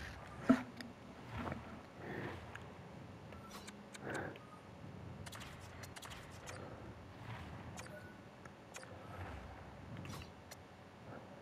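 Soft whooshes and clicks of a game menu sound now and then.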